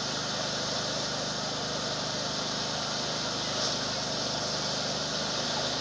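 A firework fountain hisses and crackles steadily.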